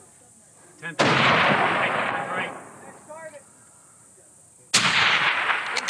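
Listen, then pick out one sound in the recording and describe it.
A rifle fires loud shots that echo across open country.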